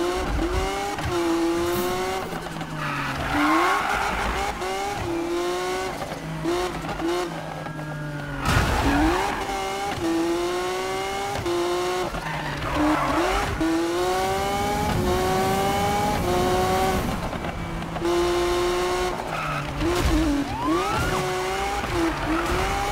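A sports car engine roars, revving up and dropping with each gear change.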